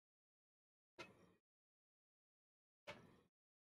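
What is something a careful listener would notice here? A hand taps a touch panel.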